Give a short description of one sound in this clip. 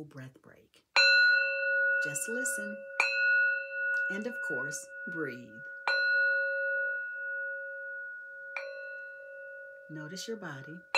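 A singing bowl is struck with a wooden mallet and rings on with a long, steady tone.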